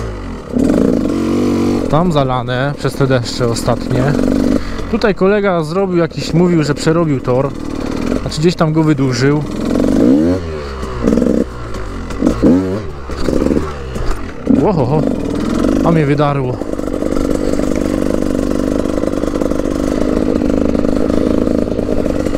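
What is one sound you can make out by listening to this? A dirt bike engine revs up and down as it rides over rough ground.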